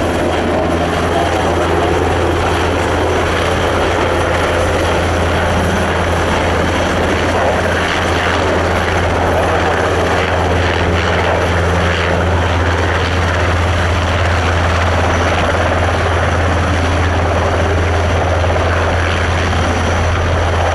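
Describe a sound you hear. A helicopter's rotor thumps and its engine roars loudly close by.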